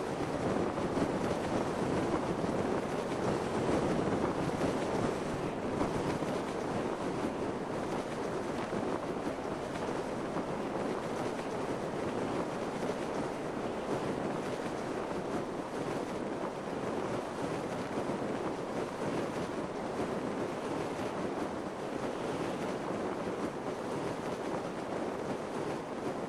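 Wind rushes steadily past a parachutist.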